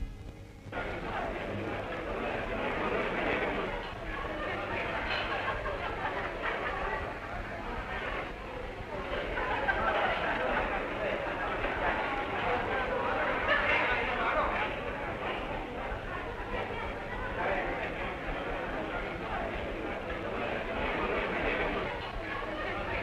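A crowd of men and women chatters in a large, busy room.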